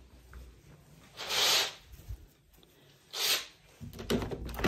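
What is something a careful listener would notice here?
A plastic-framed window is opened.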